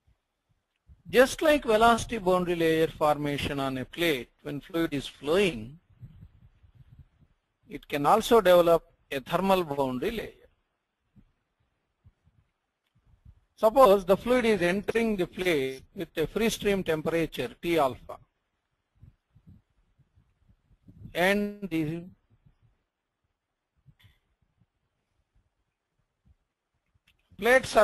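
A man speaks calmly into a close microphone, explaining in bursts with pauses.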